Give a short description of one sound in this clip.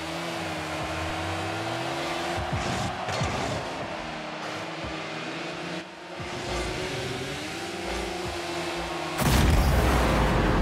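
A car engine hums and whines steadily as it speeds along.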